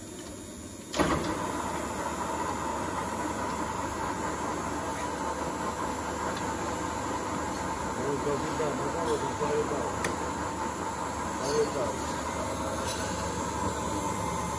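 A lathe motor starts with a clunk and hums steadily.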